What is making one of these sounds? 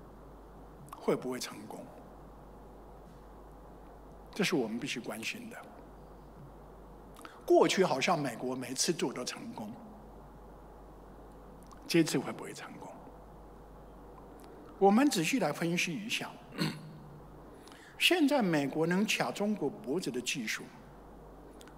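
An older man speaks through a microphone in short phrases with pauses.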